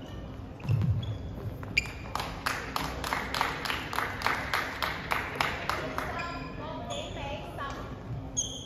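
Sneakers squeak sharply on a wooden court floor.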